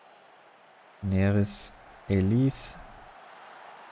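A man speaks briefly and loudly, close to a microphone.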